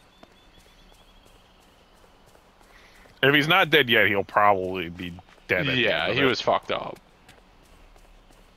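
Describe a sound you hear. Quick footsteps patter on grass and dirt.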